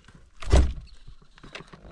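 A hand knocks on a wooden frame.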